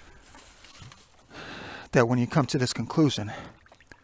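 A hand dips into shallow water.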